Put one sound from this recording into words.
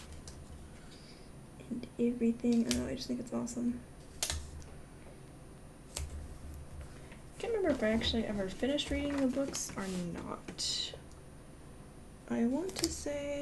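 Paper rustles and taps softly as stickers are pressed down.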